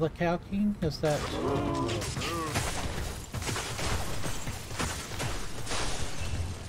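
Game sound effects of combat clash and crackle.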